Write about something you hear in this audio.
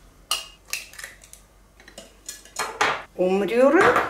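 An egg cracks against a knife's edge.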